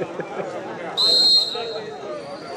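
A referee blows a whistle sharply.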